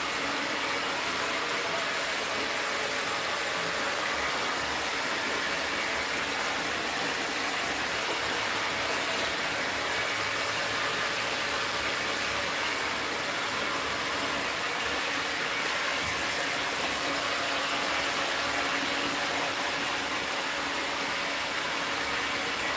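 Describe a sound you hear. A hair dryer blows with a steady whooshing roar.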